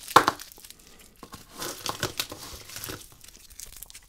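Candy sticks clatter lightly on a wooden table.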